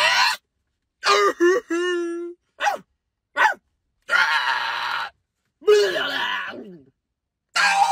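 A second young man makes silly noises in reply, close by.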